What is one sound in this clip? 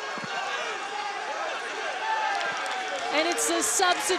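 Young men shout and cheer in celebration.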